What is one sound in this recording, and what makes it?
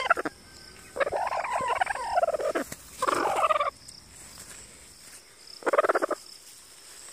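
A broody hen growls and clucks in short bursts, close by.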